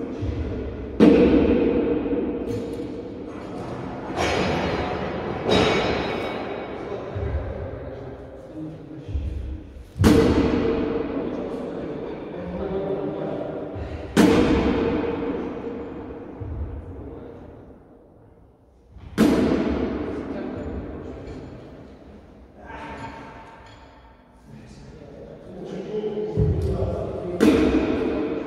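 Wooden practice swords strike with sharp cracks that echo through a large hall.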